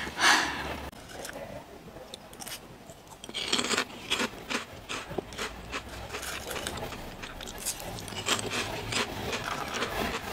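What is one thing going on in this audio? A young woman crunches loudly on crispy snacks close to a microphone.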